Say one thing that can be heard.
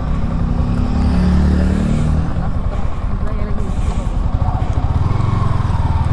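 A passing motorcycle rumbles by.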